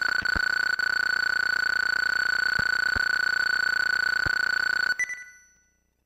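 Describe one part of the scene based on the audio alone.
A steady electronic beep rings as a game's score counts up.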